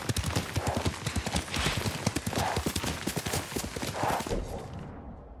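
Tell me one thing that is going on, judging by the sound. Horse hooves gallop quickly over dry leaves.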